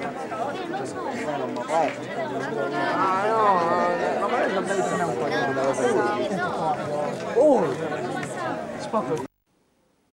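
A crowd of men and women chatter and call out nearby.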